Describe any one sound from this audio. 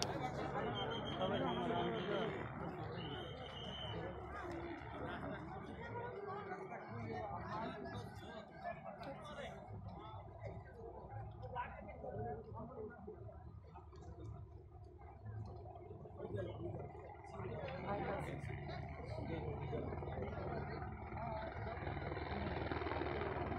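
A crowd of men and women murmurs and chatters close by.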